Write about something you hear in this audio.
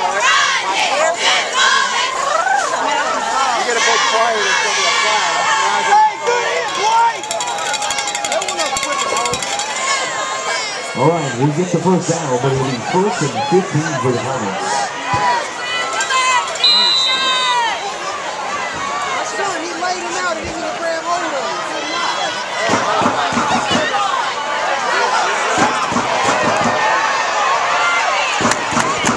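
A crowd of spectators chatters and cheers nearby outdoors.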